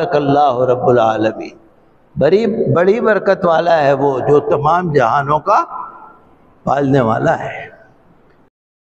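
An elderly man speaks with emphasis into a microphone.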